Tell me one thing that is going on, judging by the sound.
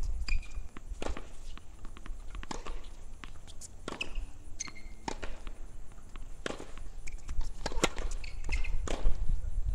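A tennis ball bounces on a hard court at a steady pace.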